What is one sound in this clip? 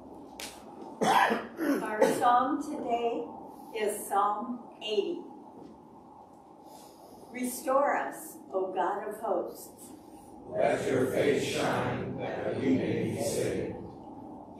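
An elderly woman speaks calmly into a microphone in an echoing hall.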